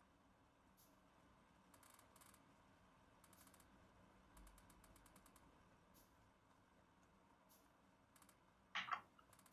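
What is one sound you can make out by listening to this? Soft mechanical clicks and ticks come in short bursts.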